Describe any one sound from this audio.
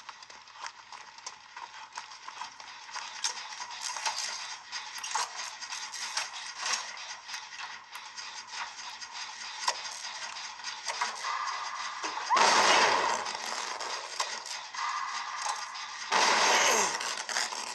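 A handheld game console plays game sound effects through its small built-in speakers.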